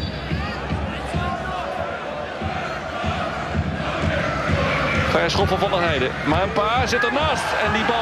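A large stadium crowd murmurs and then cheers loudly, swelling as an attack nears the goal.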